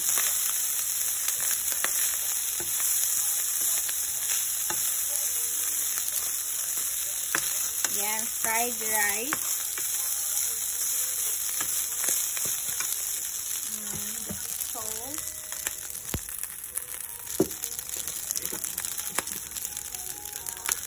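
A wooden spoon scrapes and stirs rice in a pan.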